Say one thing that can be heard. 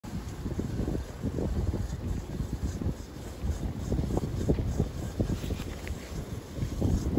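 Strong wind gusts and rumbles against the microphone outdoors.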